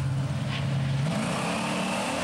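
A race car engine roars and revs up sharply as it launches.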